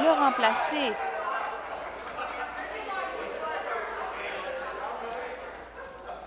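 A crowd of people murmurs and talks in a large echoing hall.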